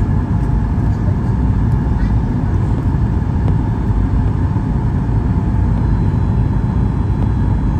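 Jet engines roar steadily from inside an airplane cabin.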